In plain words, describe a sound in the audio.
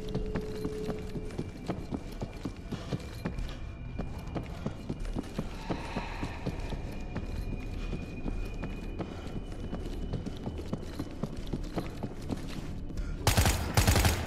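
Footsteps tread on concrete.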